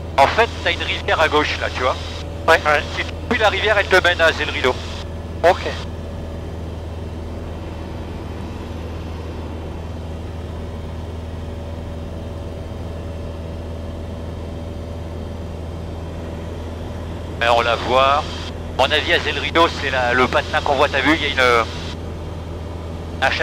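A young man speaks calmly over a crackly headset intercom.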